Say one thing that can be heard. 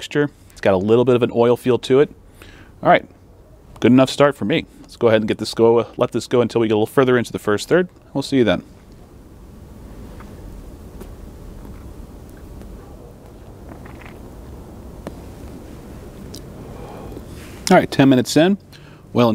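A man talks calmly and close to a microphone, in pauses.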